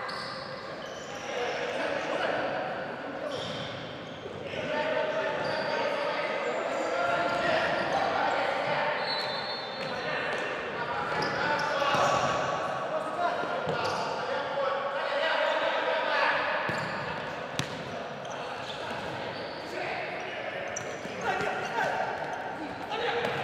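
Shoes squeak on the floor.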